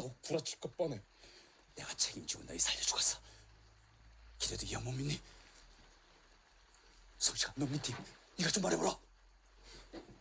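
A young man speaks tensely and firmly, close by.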